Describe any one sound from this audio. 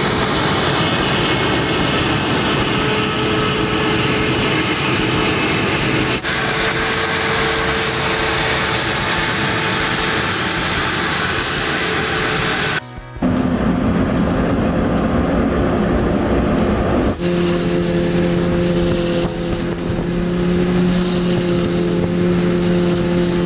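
Snow sprays and hisses from a snow blower.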